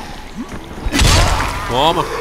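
A heavy melee blow lands with a wet thud.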